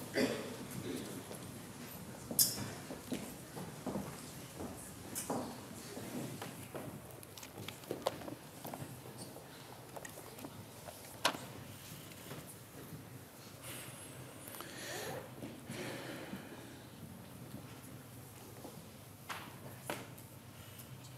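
A man speaks calmly through a microphone in a large, echoing hall.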